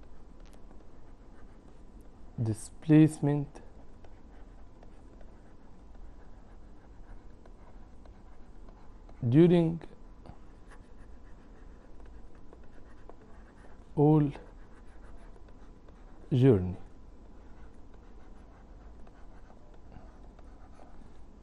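A marker squeaks faintly as it writes on a board.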